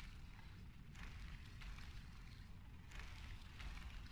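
Flames crackle softly close by.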